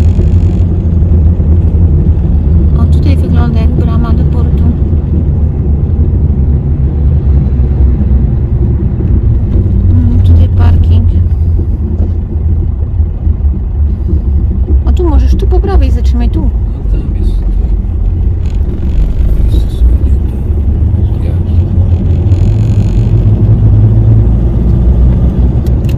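A pickup truck's engine drones, heard from inside the cab while driving at low speed.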